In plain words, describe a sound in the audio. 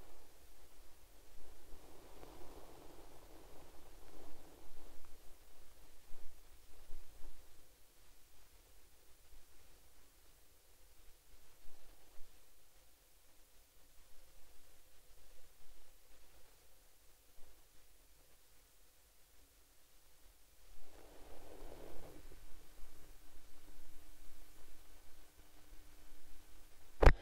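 Camels' hooves thud on sand as a pack of racing camels runs past.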